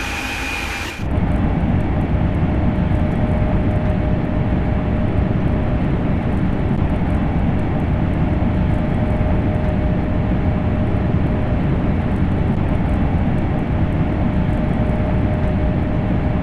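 A high-speed electric train rumbles deeply at speed, heard from inside the cab.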